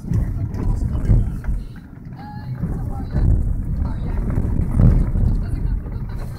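A car engine rumbles from inside as the car drives slowly.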